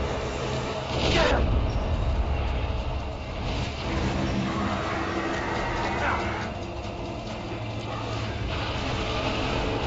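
A deep explosion booms.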